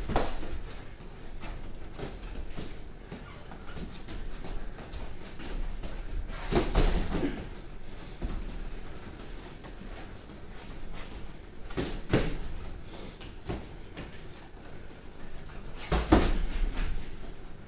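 Boxing gloves thud against each other and on bodies in quick exchanges.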